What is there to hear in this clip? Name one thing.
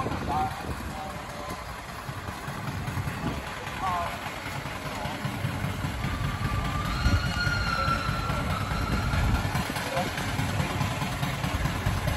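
A steam traction engine chugs and hisses nearby.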